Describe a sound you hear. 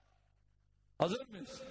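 A man speaks forcefully through a microphone and loudspeakers.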